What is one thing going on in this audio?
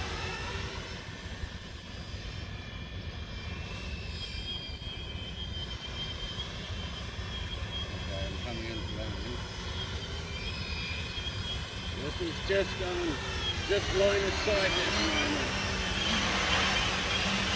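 A drone buzzes overhead, growing louder as it comes closer.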